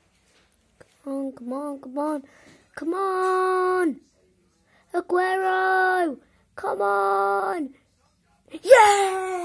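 A television plays music in the background.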